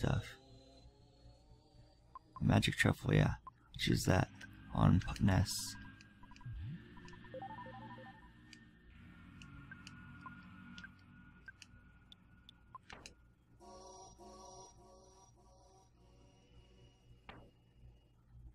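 Short electronic blips sound as a game menu cursor moves.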